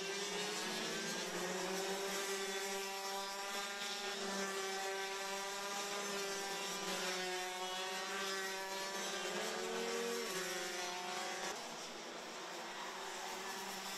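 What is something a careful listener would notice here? Kart engines whine and buzz loudly, rising and falling in pitch as karts race past.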